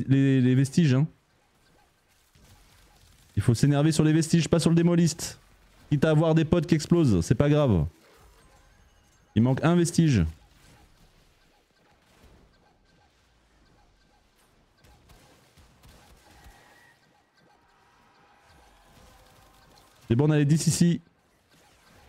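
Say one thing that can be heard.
A man speaks with animation close to a microphone, in short bursts.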